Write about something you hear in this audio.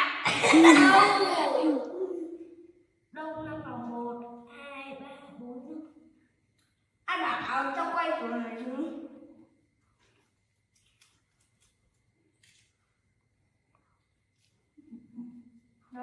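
A second young boy answers with animation close by.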